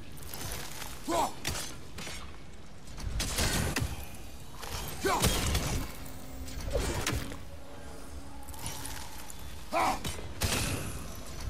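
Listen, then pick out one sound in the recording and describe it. Crystal shards crack and shatter.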